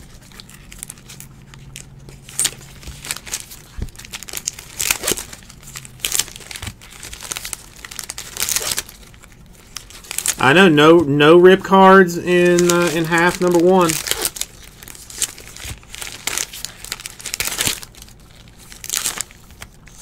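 Foil wrappers crinkle and rustle as hands tear packs open.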